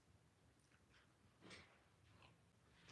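A woman sips a drink.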